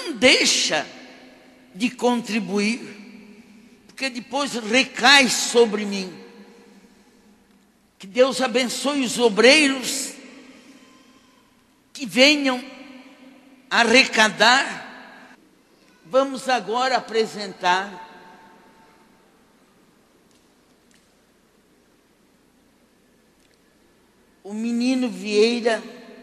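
An elderly woman speaks with animation into a microphone, heard through loudspeakers in an echoing hall.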